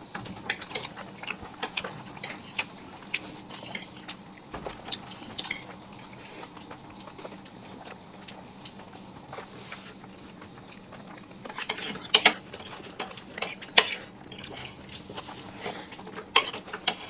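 A man and two women chew and slurp noodles close to a microphone.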